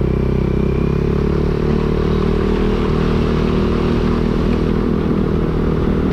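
A motor scooter engine hums while cruising along a road.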